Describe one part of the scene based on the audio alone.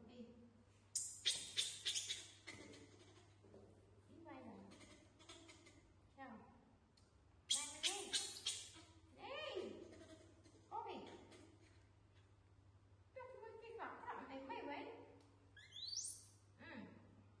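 Young monkeys squeal in short, high bursts.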